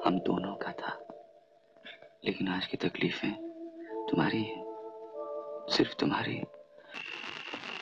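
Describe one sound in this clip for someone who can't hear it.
A man speaks softly and closely.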